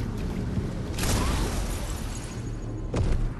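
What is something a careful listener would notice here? A heavy weapon swings and strikes with a loud whoosh.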